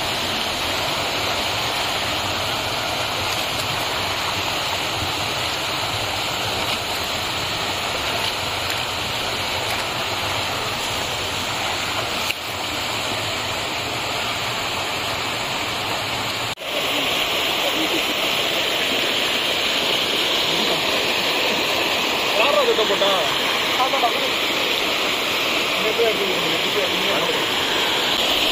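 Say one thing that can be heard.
A shallow stream rushes and gurgles over rocks close by.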